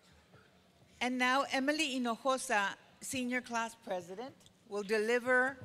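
A woman speaks clearly through a microphone and loudspeakers in an echoing hall.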